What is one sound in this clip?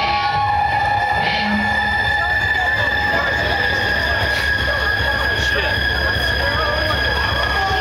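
A rock band plays loudly through a large sound system.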